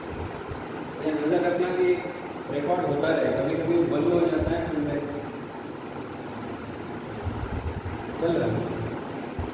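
A man speaks calmly and clearly, as if explaining.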